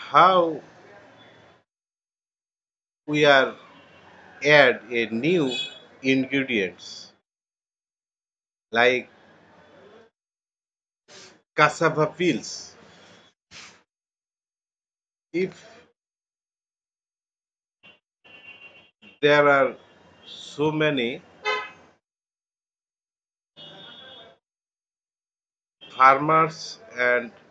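A middle-aged man speaks calmly in short phrases, close to a microphone.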